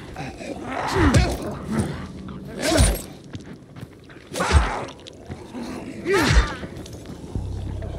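A machete strikes a zombie with heavy thuds.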